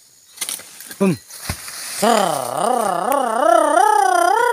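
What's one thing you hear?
A cut palm frond crashes down through leaves.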